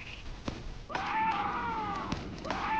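A rocket explodes with a loud boom.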